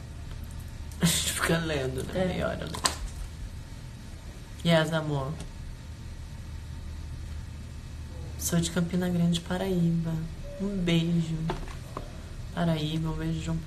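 A young woman talks casually and close by, with pauses.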